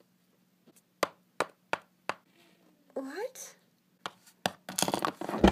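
Small plastic toys tap and knock on a hard tabletop.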